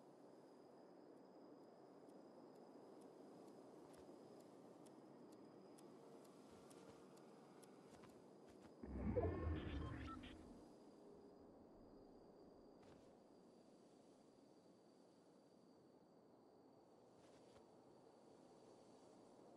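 Wind blows steadily across open snow.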